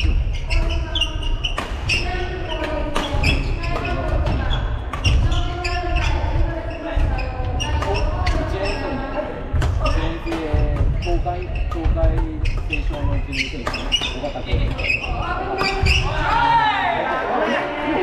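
Shoes squeak and patter on a wooden floor.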